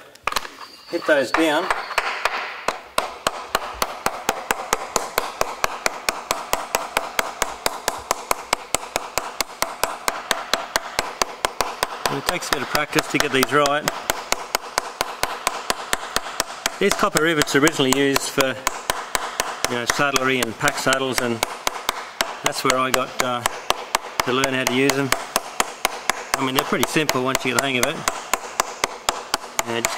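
A hammer taps rapidly and steadily on metal rivets.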